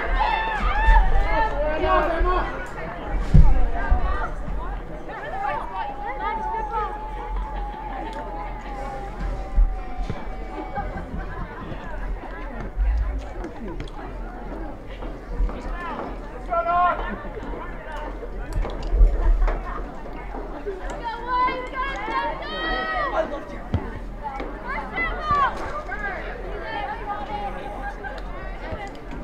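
A small crowd of spectators calls out and cheers from a distance.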